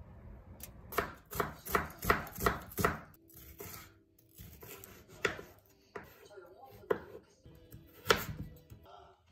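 A knife chops vegetables on a wooden board with sharp knocks.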